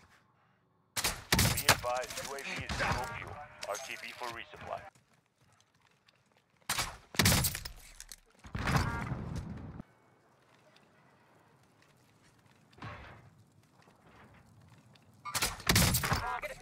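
A crossbow fires with a sharp twang.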